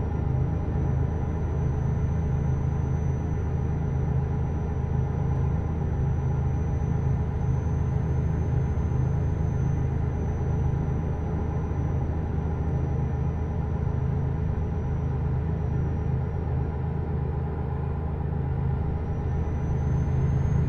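A truck engine drones steadily with a low rumble.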